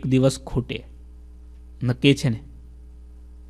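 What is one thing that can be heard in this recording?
A man speaks calmly into a microphone in short bursts.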